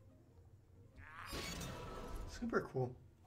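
A magic spell whooshes and strikes with a burst.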